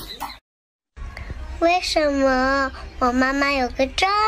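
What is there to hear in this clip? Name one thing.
A childlike voice sings in a high, bouncy tune.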